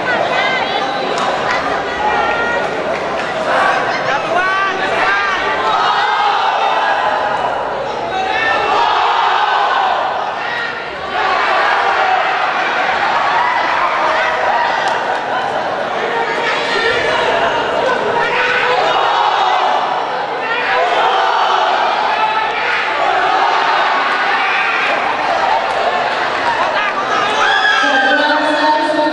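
A crowd of spectators chatters and cheers loudly in an echoing hall.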